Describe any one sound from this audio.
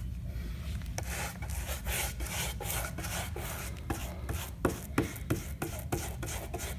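A paintbrush swishes in quick strokes across a board.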